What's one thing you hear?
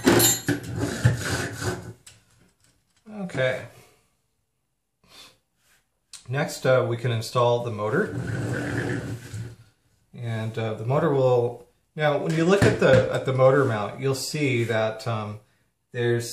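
A metal frame knocks and rattles as it is lifted and set down on a table.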